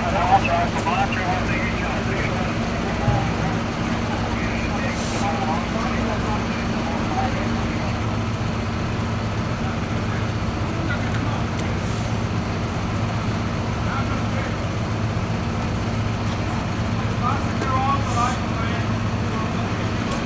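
Men talk among themselves outdoors.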